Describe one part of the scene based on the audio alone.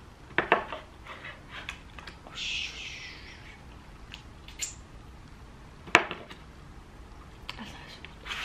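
A woman chews food close by.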